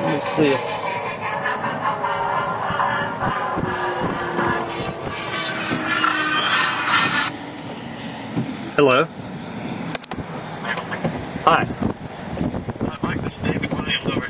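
Strong wind gusts and rumbles against the microphone outdoors.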